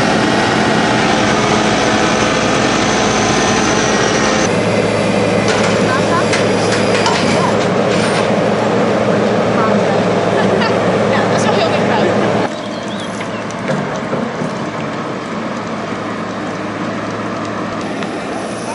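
A heavy excavator engine rumbles steadily outdoors.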